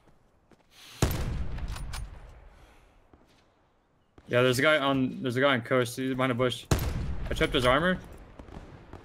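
A rifle fires with a loud boom that echoes away.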